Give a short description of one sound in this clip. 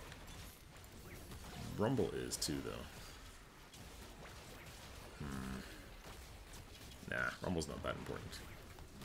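Magical spell effects crackle and whoosh during a battle.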